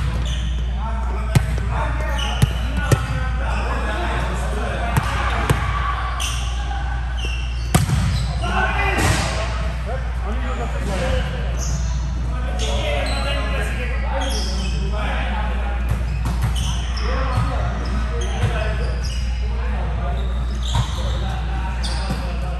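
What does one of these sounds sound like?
Young men call out and talk across a large echoing hall.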